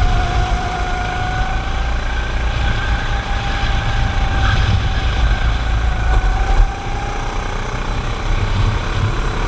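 Wind rushes past with a steady roar.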